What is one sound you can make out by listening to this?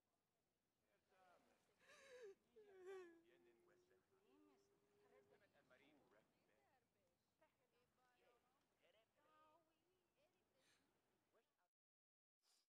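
A woman speaks softly and sadly.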